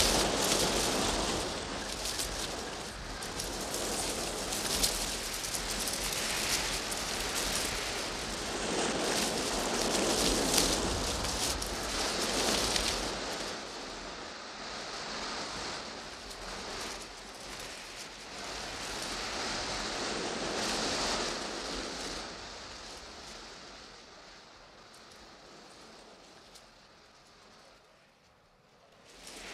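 Wind gusts through leaves and trees outdoors.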